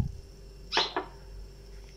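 A glass is set down on a stone counter with a clink.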